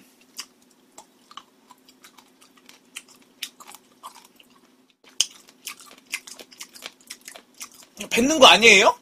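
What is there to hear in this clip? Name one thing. A young man chews food noisily close to a microphone.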